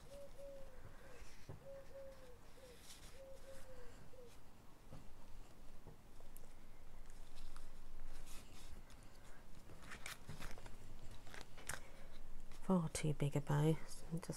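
Paper rustles and crinkles as hands handle a card.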